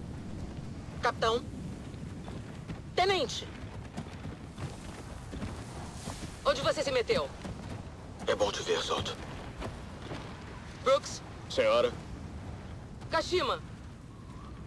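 A man speaks in short, firm phrases nearby.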